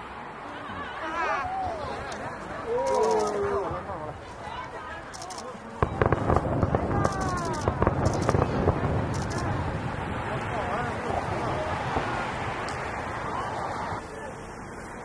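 Fireworks pop and crackle in the distance.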